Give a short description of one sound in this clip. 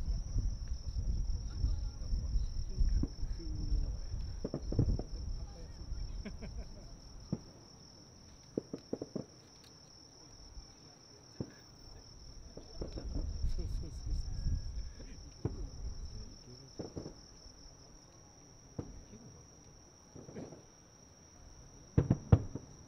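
Distant fireworks boom and crackle, echoing across open air.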